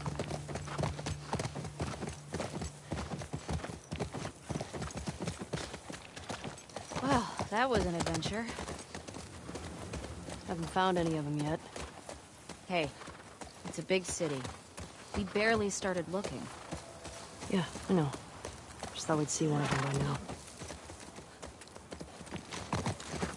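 A horse walks, its hooves thudding.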